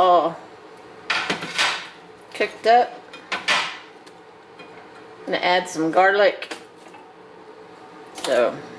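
Vegetables sizzle softly in a frying pan.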